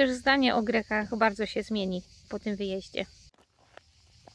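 A woman speaks calmly and warmly, close by.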